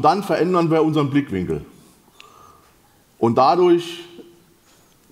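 A man speaks through a microphone in short bursts, heard over a loudspeaker in a large hall.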